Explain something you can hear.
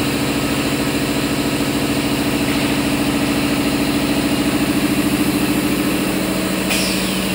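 Industrial machinery hums steadily.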